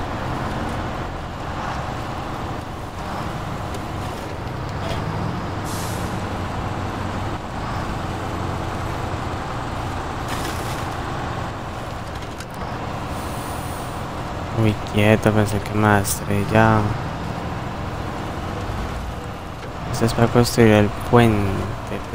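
A heavy truck engine rumbles and labours steadily.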